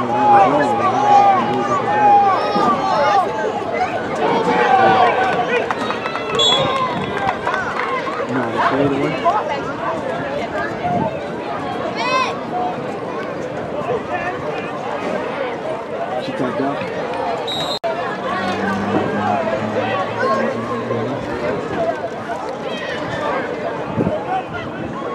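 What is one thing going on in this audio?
A crowd of spectators cheers and shouts outdoors, loudest at the start.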